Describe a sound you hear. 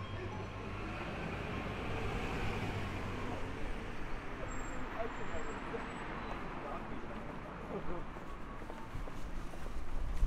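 Steady city street noise rumbles outdoors.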